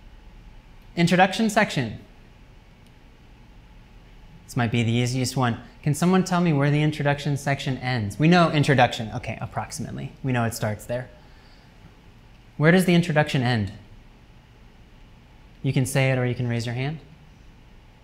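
A man lectures, speaking calmly with pauses.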